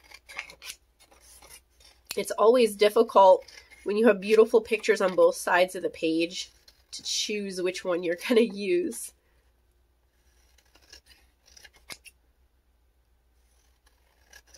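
Scissors snip through thin paper.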